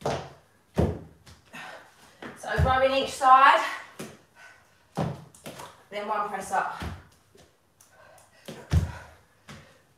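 Dumbbells thud on the floor.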